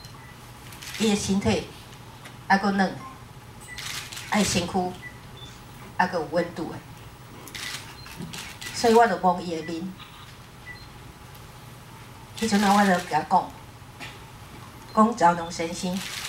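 A middle-aged woman speaks calmly through a microphone in short phrases.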